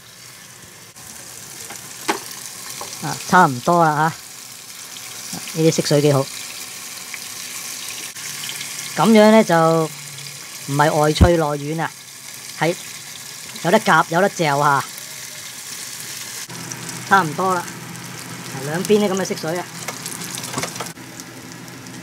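Food sizzles softly in hot oil in a pan.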